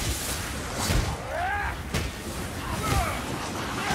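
A burst of fire crackles and roars.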